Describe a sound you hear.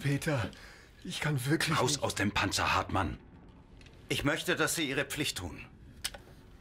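A man speaks sternly and close by.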